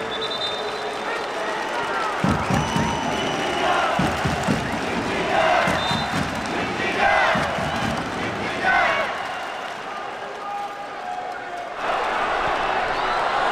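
A stadium crowd murmurs and cheers in a large open space.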